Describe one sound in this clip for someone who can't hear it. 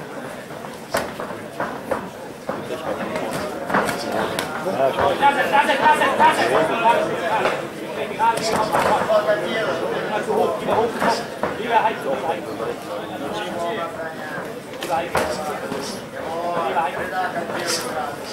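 Kicks and punches thud against bodies and gloves.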